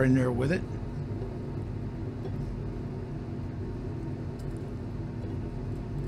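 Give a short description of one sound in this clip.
Small pieces patter into a glass beaker.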